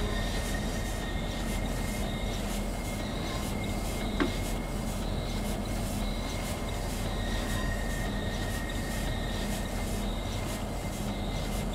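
A train engine hums steadily with a low rumble.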